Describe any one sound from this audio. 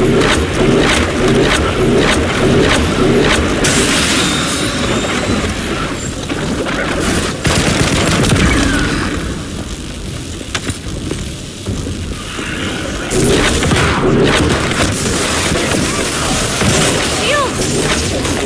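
Electricity crackles and buzzes in bursts.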